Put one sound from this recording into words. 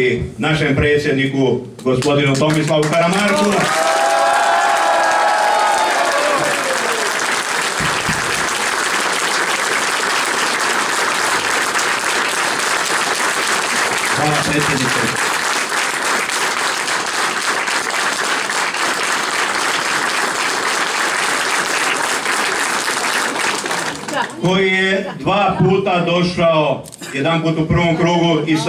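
A middle-aged man speaks loudly into a microphone.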